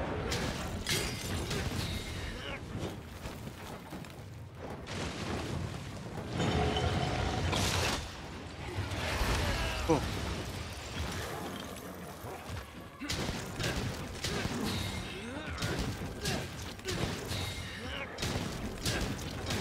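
Fiery blasts burst with loud booms.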